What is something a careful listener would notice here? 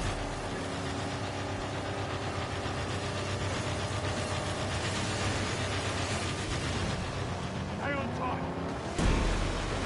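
Car engines roar loudly at speed.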